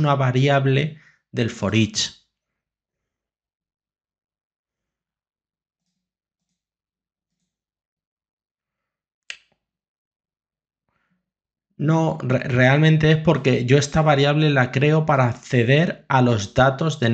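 A man talks calmly and explains, close to a microphone.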